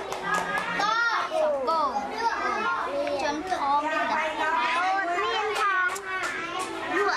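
Young children chatter and talk loudly close by.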